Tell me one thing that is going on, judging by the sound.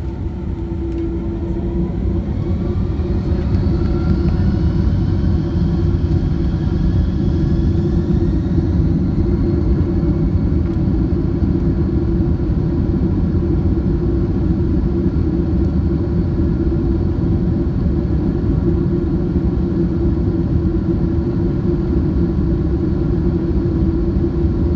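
Wheels rumble over a runway.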